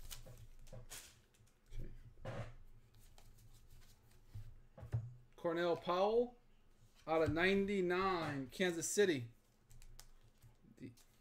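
Trading cards rustle and slide against each other as they are handled.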